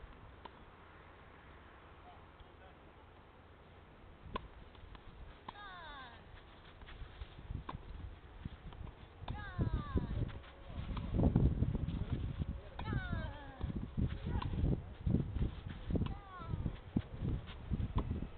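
A tennis ball is struck with a racket, with sharp pops now and then.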